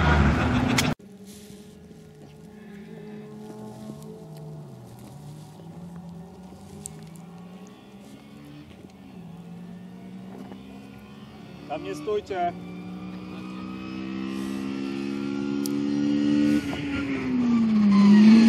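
A Honda Civic rally car's engine revs as it approaches from the distance and grows louder.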